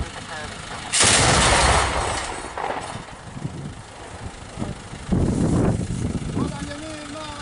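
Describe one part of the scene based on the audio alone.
A heavy gun fires loud blasts close by.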